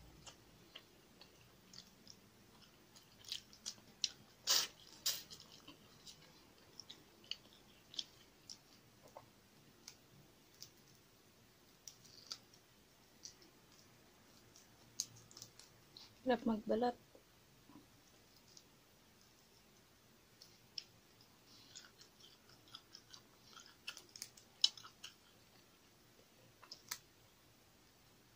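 Fingers peel and tear food with small crackling sounds.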